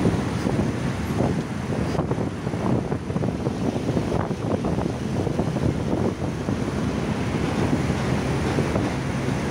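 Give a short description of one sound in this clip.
Wind rushes and buffets loudly past a moving vehicle.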